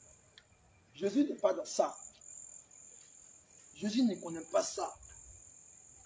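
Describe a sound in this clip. A man speaks outdoors in short phrases with pauses.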